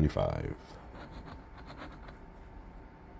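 A coin scratches across a paper card.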